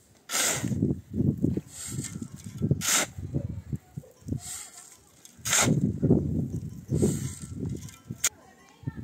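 Gravel pours and rattles into a metal wheelbarrow.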